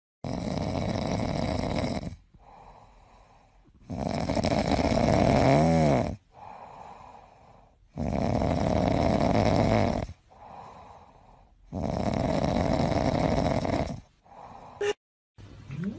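A cat purrs loudly and close by, in long rising and falling breaths.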